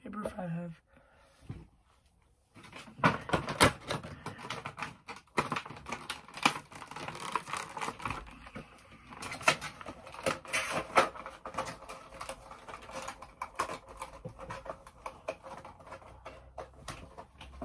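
Cards and packaging rustle and crinkle in hands.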